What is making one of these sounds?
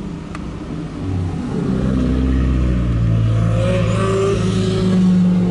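A car engine roars loudly as it approaches.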